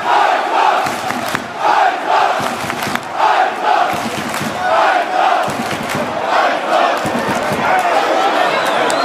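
A large stadium crowd chants loudly in rhythm.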